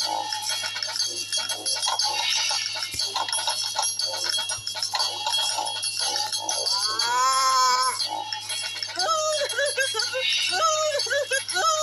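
A cheerful brass band tune plays with a tuba and drum.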